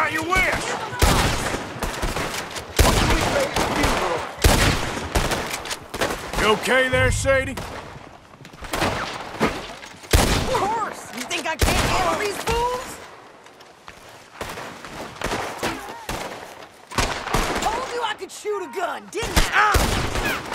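Rifle shots ring out loudly, one after another.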